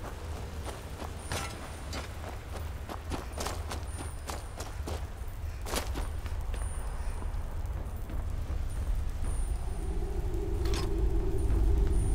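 Footsteps crunch over snow and stone.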